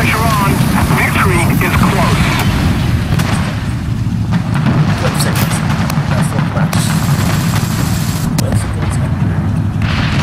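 A tank engine idles with a deep, steady rumble.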